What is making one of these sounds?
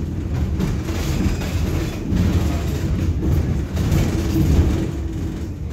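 Another tram passes close by in the opposite direction.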